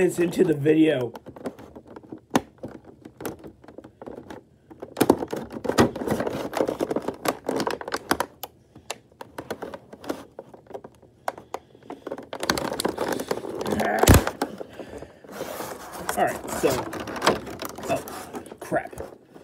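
Plastic packaging crinkles and rustles under handling.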